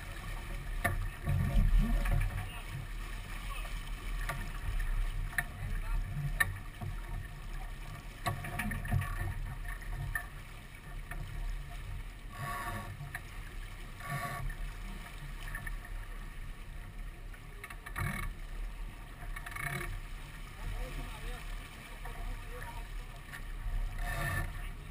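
Water rushes and splashes along a sailboat's hull.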